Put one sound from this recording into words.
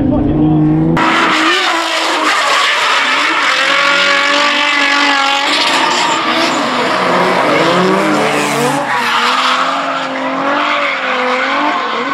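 A car engine revs hard and wails up and down as the car drifts.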